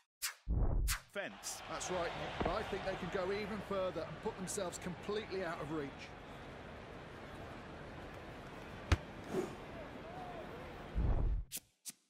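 A stadium crowd murmurs and cheers.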